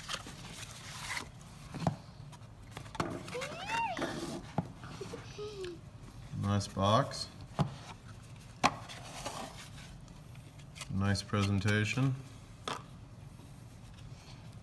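Cardboard boxes rustle and scrape as hands handle them.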